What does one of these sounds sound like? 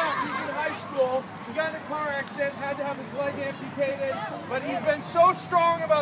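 A man speaks loudly to the children nearby.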